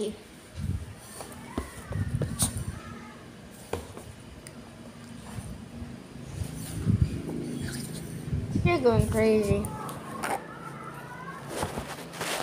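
A young girl talks softly close by.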